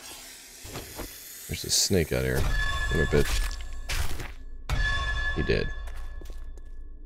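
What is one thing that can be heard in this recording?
Knives stab into flesh with wet, squelching thuds.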